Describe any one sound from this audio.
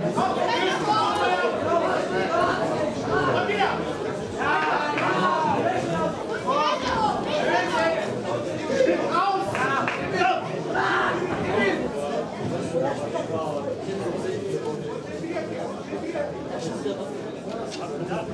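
A crowd of men and women chatter and call out in a large echoing hall.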